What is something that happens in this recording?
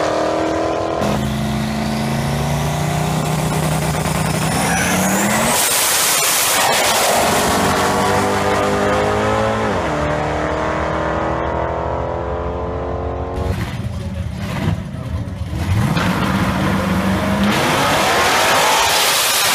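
Car engines rev and idle nearby.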